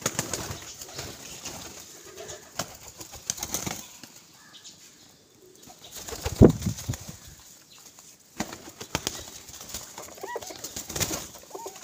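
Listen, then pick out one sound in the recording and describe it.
Pigeon wings flap and beat close by.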